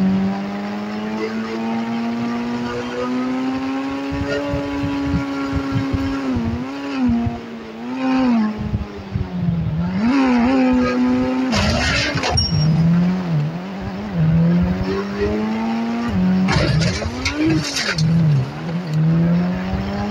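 A sports car engine hums steadily and revs up and down.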